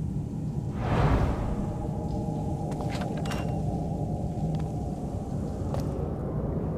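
A heavy door creaks slowly open.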